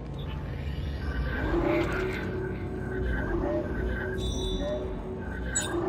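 Soft electronic chimes and beeps sound in quick succession.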